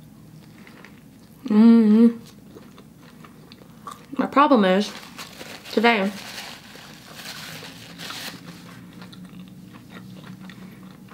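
A young woman chews food with soft crunching.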